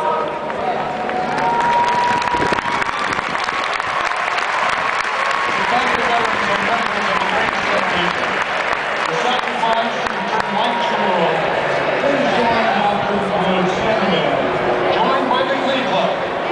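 A marching band plays brass music across a large open stadium.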